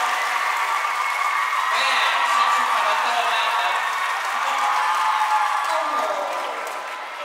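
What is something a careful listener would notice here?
A marching band's horns play loudly in a large echoing hall, then stop.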